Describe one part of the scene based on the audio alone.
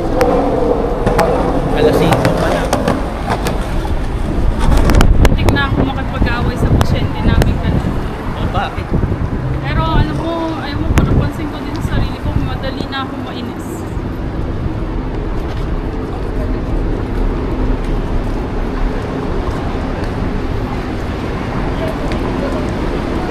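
City traffic rumbles steadily outdoors in wind.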